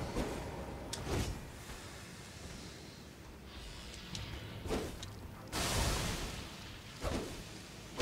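A sword swings and strikes with a heavy thud.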